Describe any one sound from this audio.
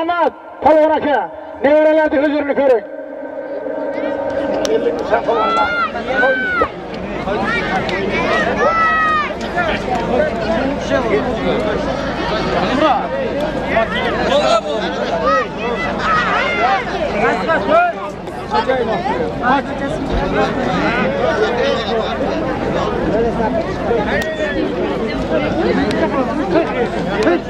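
A large crowd of men shouts and calls out outdoors.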